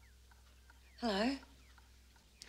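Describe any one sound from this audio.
A woman speaks briefly and quietly, close by.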